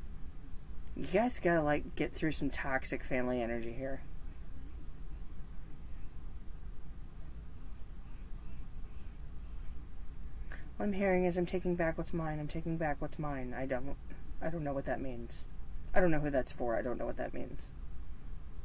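A woman speaks calmly and close by, in short bursts with pauses.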